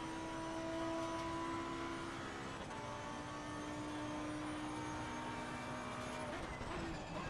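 A racing car engine roars at high revs, shifting up through the gears.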